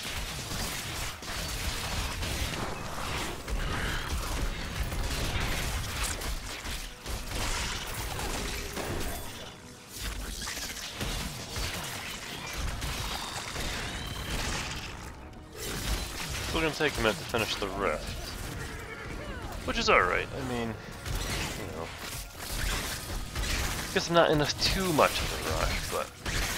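Magic blasts crackle and boom in a fierce fight.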